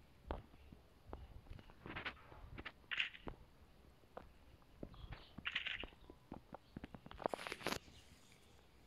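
Footsteps clank on a metal roof.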